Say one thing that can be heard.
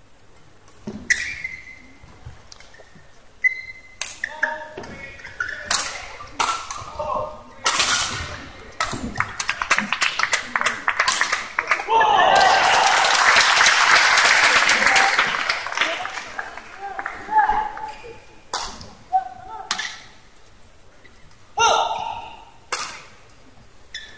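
Badminton rackets strike a shuttlecock in a large hall.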